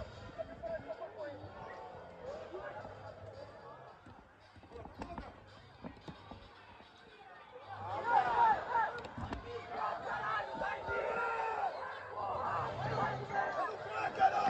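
Young players shout and call out to each other across an open outdoor field.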